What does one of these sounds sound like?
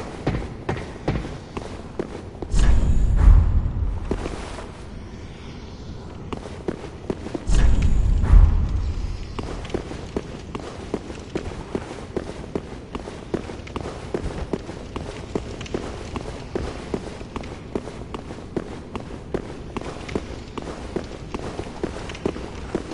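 Armored footsteps clank steadily on stone.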